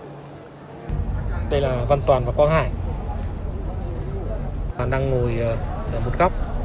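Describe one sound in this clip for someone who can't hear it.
A man talks close by, with animation.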